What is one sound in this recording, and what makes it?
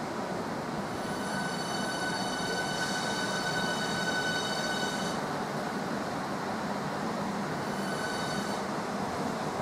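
A train's brakes squeal with a high whine.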